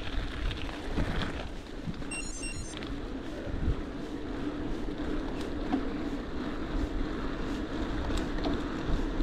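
Bicycle tyres hum on smooth tarmac.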